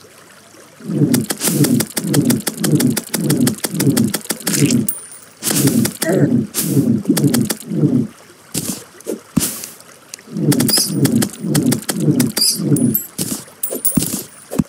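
Quick, light footsteps patter in a rhythm as a small game figure runs.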